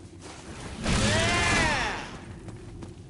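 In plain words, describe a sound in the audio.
A fiery burst roars and whooshes.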